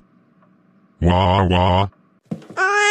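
A man's synthetic voice wails loudly.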